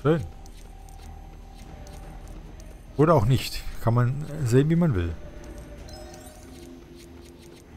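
Small coins clink and jingle as they scatter and are collected.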